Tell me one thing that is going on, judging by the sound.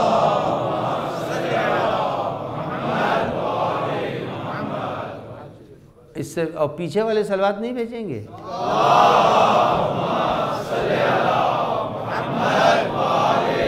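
An elderly man speaks with emotion into a microphone in an echoing hall.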